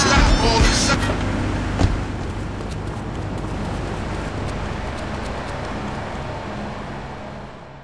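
Footsteps run on hard ground.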